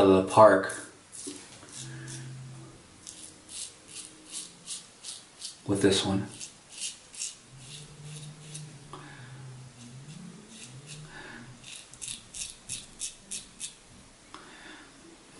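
A razor scrapes through stubble in short, rhythmic strokes.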